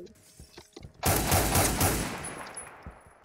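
A sniper rifle fires a loud, booming shot.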